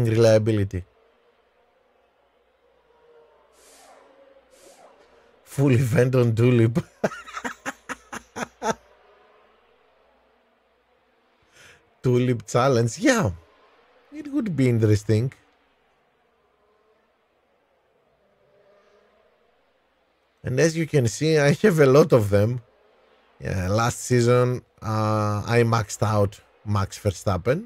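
A man speaks with animation into a close microphone, with pauses.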